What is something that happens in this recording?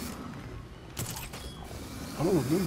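A grappling line fires and zips taut.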